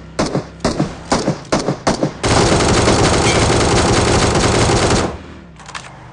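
A buggy engine roars.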